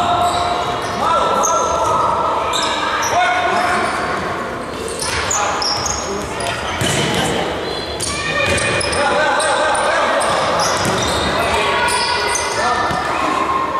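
Sneakers squeak sharply on a hard indoor court in an echoing hall.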